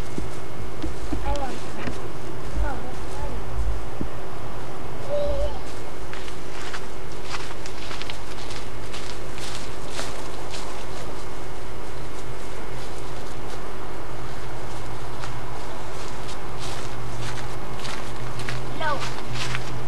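Young children call out and chatter nearby outdoors.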